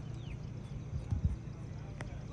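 A football is kicked with a dull thud in the distance.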